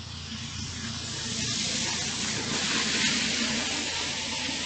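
Cars drive past on a nearby road with a rushing hiss.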